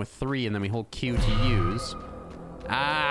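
A magic spell charges with a shimmering hum.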